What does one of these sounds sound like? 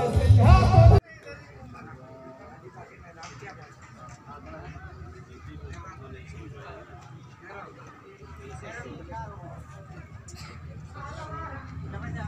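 Several men talk in a crowd nearby.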